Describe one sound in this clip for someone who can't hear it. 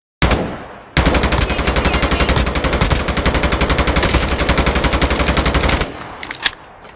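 A rifle fires in a rapid, rattling burst.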